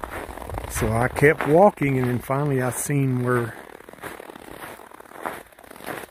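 Footsteps crunch softly in snow.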